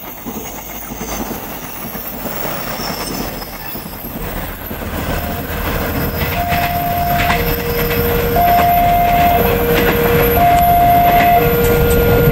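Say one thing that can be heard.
A passing train rumbles along the rails.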